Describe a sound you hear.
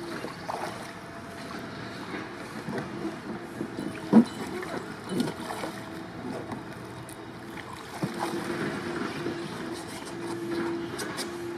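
Water splashes and laps as a man climbs onto a kayak.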